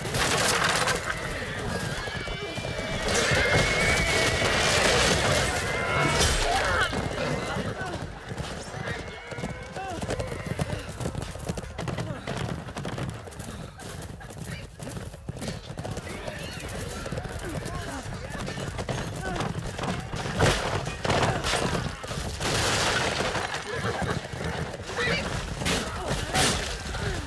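Horse hooves pound steadily at a gallop.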